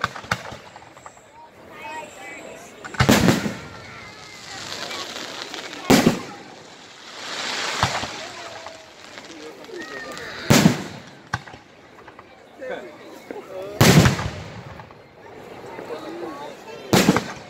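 Firework rockets whistle and hiss as they rise.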